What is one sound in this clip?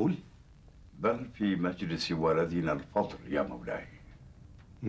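An elderly man speaks gravely.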